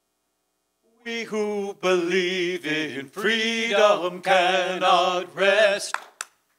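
Two men sing a hymn together.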